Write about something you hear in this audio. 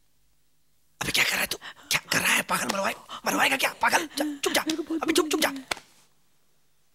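A man shouts loudly in distress.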